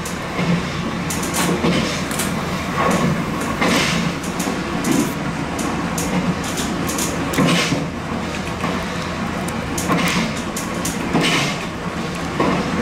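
A train rumbles steadily along the tracks.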